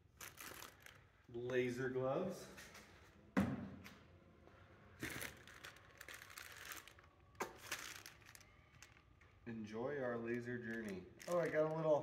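Cardboard rustles as a box is rummaged through.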